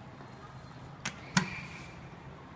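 An elevator button clicks as it is pressed.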